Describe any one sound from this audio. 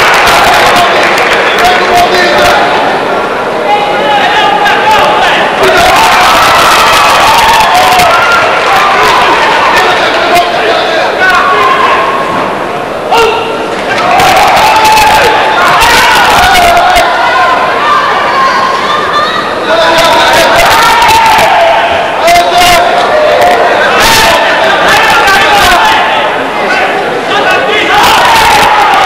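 A large crowd shouts and cheers loudly in an echoing hall.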